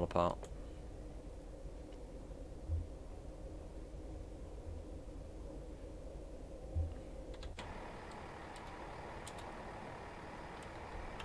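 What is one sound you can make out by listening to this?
A train engine hums and rumbles steadily on the rails.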